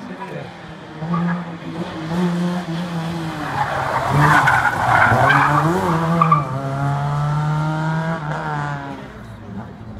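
A car engine roars and revs hard as the car speeds past close by.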